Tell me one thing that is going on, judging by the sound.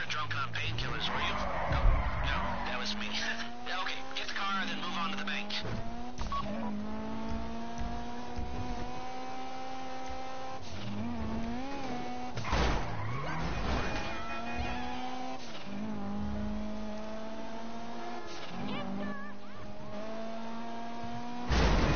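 A car engine revs and roars as it speeds along a road.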